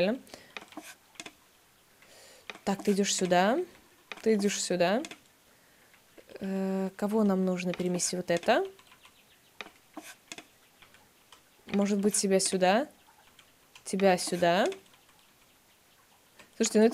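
A young woman speaks calmly into a close microphone, in short phrases with pauses.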